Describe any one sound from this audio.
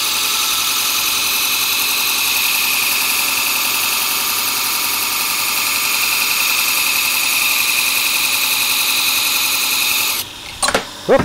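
A belt grinder rasps loudly as a steel blade is ground against it.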